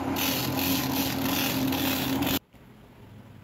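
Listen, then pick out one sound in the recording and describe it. A belt sander grinds a shoe sole.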